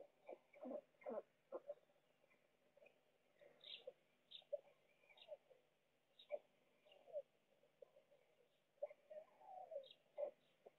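Stork chicks make short, raspy begging calls close by, on and off.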